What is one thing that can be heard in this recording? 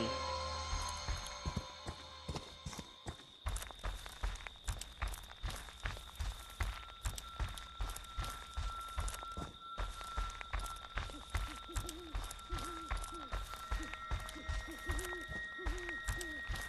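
Footsteps crunch steadily through dry leaves.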